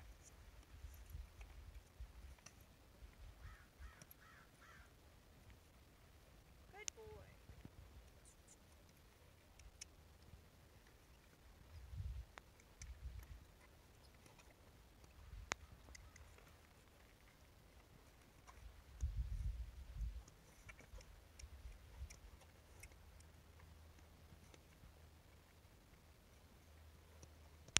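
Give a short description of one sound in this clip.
A horse's hooves thud softly on dirt at a walk.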